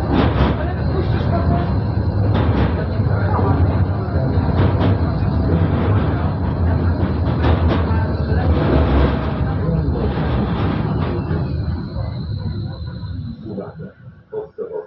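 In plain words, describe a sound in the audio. A tram rumbles along its rails and slows to a stop.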